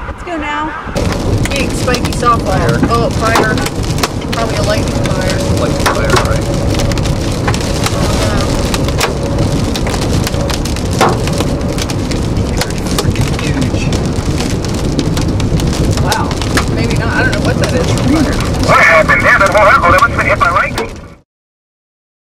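Strong wind roars around a moving car.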